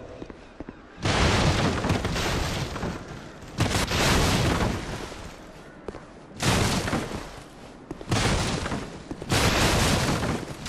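Wooden crates smash and splinter loudly.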